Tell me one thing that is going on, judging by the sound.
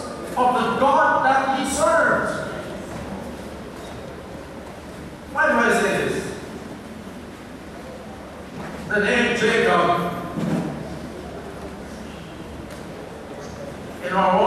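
An elderly man speaks slowly and formally through a microphone and loudspeakers, with pauses and a hall echo.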